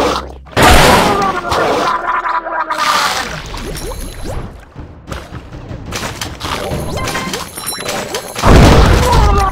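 A cartoonish shark chomps and crunches its prey in loud splashy bursts.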